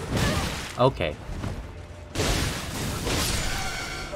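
A sword slashes and strikes a creature.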